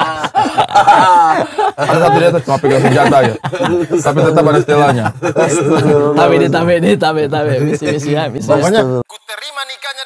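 Men laugh loudly nearby.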